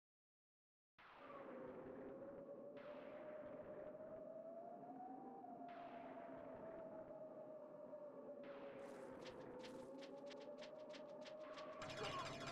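Eerie video game music plays with a slow, wavering melody.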